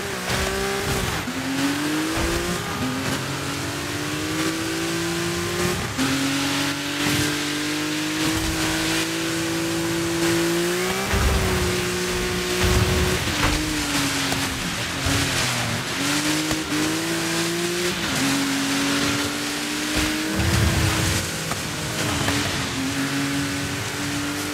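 Tyres spray through slush and water with a hissing splash.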